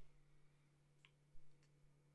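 A soft electronic blip sounds as a menu option is selected.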